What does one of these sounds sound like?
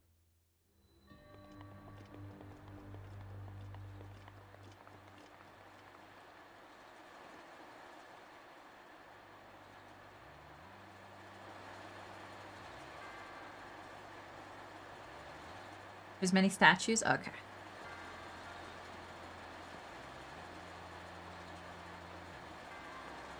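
Soft, calm electronic music plays steadily.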